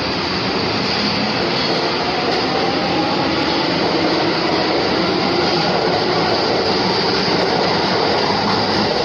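The motors of an electric subway train whine higher as it gains speed.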